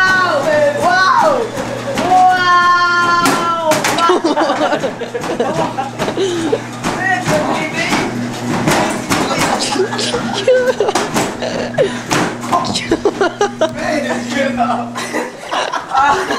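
Feet thump quickly on a treadmill belt.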